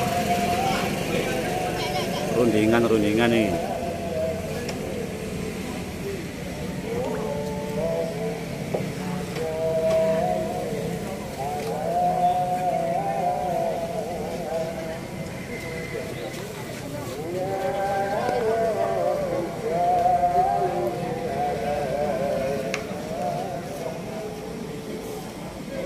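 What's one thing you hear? Music with a singing voice plays through a large outdoor sound system.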